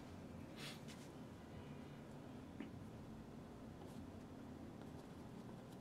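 A brush scrapes and dabs softly on canvas.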